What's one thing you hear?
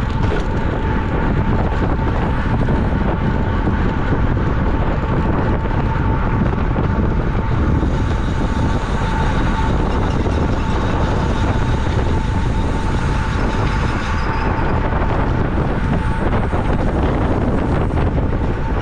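Wind roars loudly over a microphone.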